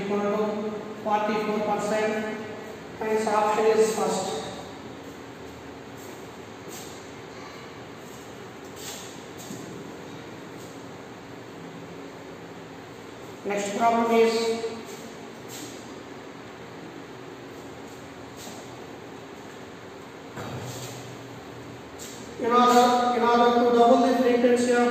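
A man speaks calmly and clearly, close by, as if teaching.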